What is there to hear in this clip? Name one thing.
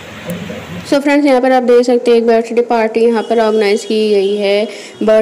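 Women and children sing together.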